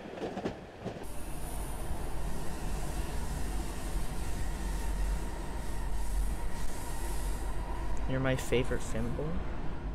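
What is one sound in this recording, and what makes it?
A train rumbles low and steady.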